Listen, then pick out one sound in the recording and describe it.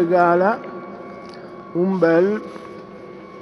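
A man calls out loudly in an echoing hall.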